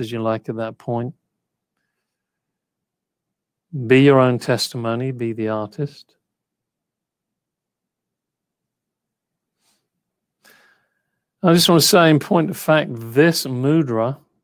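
An older man speaks calmly over a headset microphone, heard as through an online call, with long pauses.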